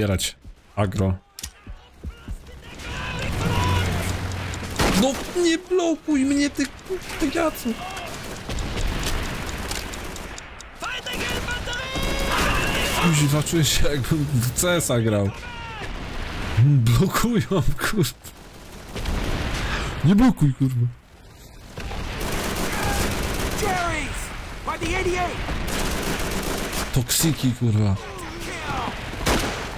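Rifle shots crack in bursts.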